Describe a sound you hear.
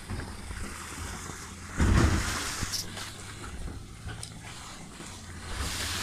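A man splashes as he wades through water.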